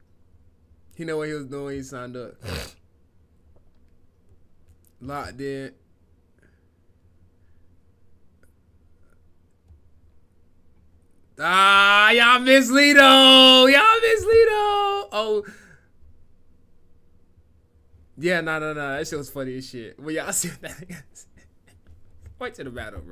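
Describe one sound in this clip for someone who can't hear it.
A young man talks with animation into a microphone close by.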